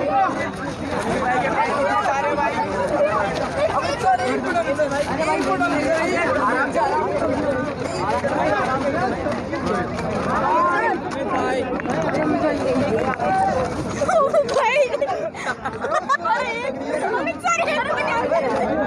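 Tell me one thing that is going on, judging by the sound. A crowd of young men shouts and chants loudly close by, outdoors.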